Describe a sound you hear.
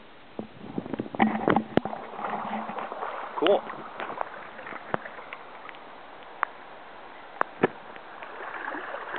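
Footsteps in waders slosh through shallow water.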